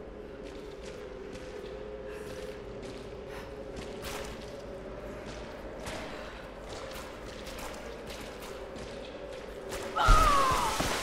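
Bones crunch and clatter underfoot.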